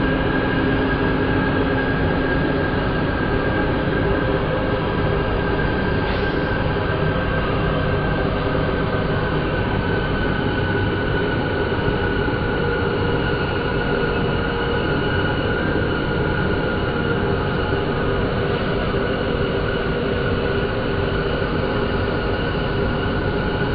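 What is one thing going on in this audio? Road traffic roars nearby.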